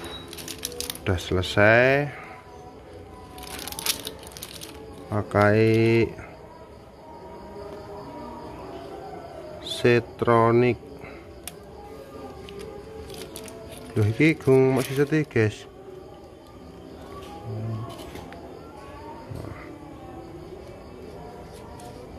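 Plastic and metal cable connectors rattle and click softly in a hand.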